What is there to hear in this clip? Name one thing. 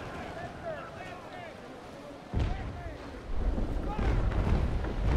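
Sea waves splash and wash against a wooden ship's hull.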